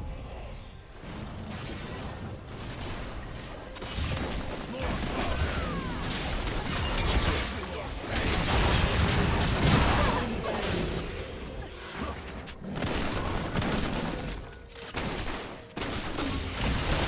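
Magic blasts and weapon clashes burst out in a fast, busy game fight.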